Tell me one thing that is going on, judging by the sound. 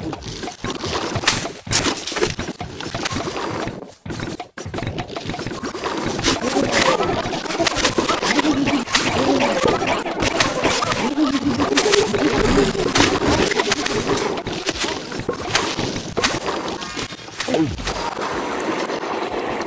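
Cartoon game sound effects pop and thud rapidly.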